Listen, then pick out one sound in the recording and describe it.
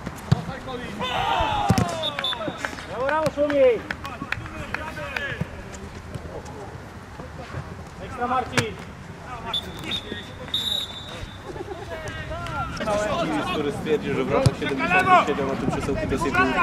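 Young men shout and call to each other across an open pitch.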